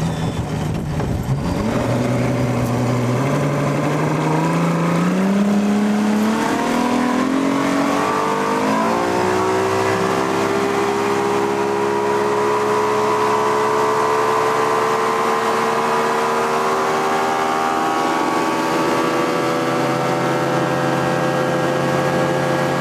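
A boat engine revs up, rising in pitch, then drones steadily at speed.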